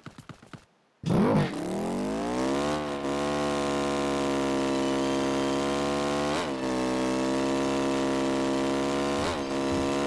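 A truck engine starts with a roar, revs up and then drones steadily.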